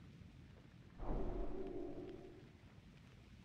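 A magic spell bursts with a loud humming whoosh and fades.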